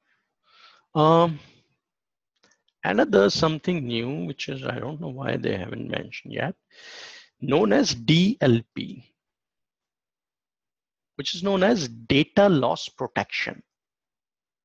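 A man speaks calmly through a microphone, as if on an online call.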